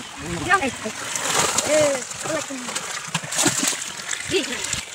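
Water splashes loudly as fish are poured out.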